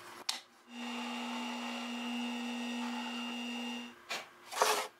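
A drill press whirs as it bores into wood.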